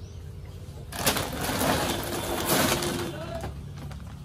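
A plastic feed sack rustles and crinkles as it is lifted and set down.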